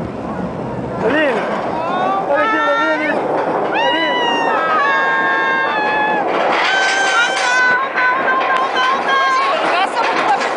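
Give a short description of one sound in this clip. A young woman laughs and squeals loudly close by.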